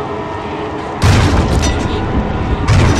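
Loud gunshots blast in quick bursts.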